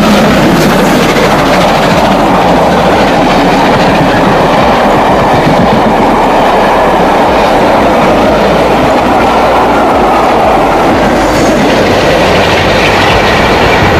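Train carriages rumble and clatter past close by.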